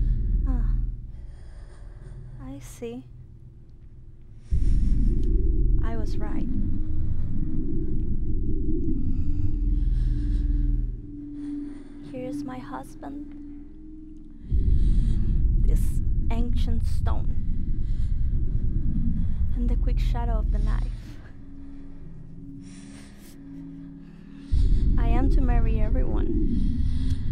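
A young woman sings through a microphone with a wavering voice.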